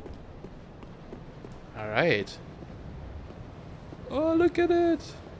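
Footsteps patter quickly on stone steps.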